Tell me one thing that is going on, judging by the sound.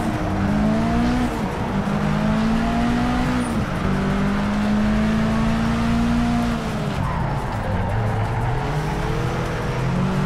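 Tyres squeal on tarmac.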